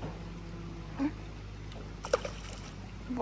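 A stone splashes into water nearby.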